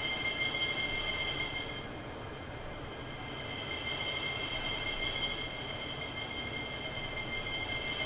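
A train's motor whines with a steady high tone.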